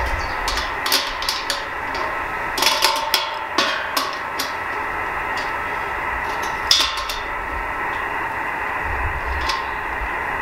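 Metal clicks and knocks as a satellite dish is turned on its mount.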